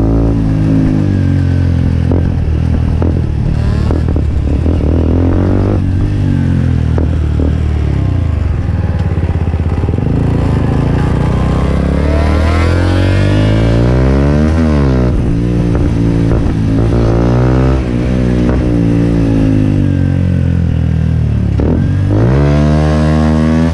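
A motorcycle engine runs loudly close by, its pitch rising and falling as it speeds up and slows down.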